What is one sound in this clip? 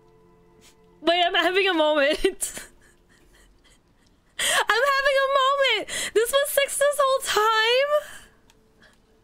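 A young woman laughs loudly and excitedly close to a microphone.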